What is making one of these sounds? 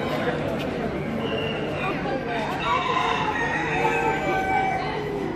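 Many caged birds coo and chirp nearby.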